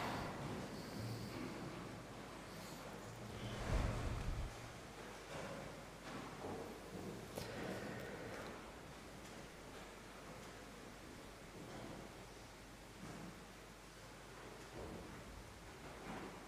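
A man speaks calmly into a microphone, reading out in a reverberant hall.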